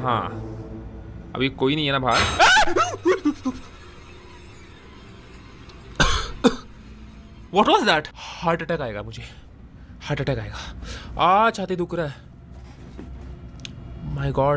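A young man talks into a close microphone in an excited, dramatic way.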